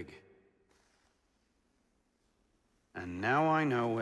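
A finger slides softly across a sheet of paper.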